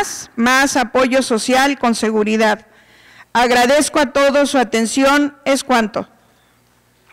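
A young woman reads out steadily into a microphone.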